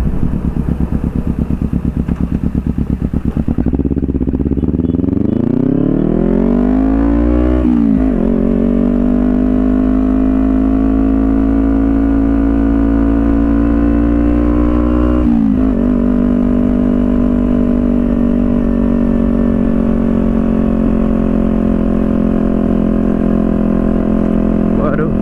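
A motorcycle engine putters, then revs up, shifts gears and drones steadily as the bike speeds along.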